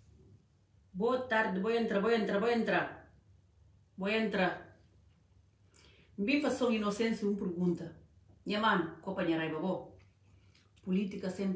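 A woman speaks calmly and earnestly, close to a microphone.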